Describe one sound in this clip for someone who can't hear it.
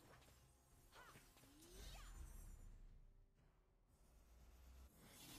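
Magic spell effects whoosh and chime in a battle video game.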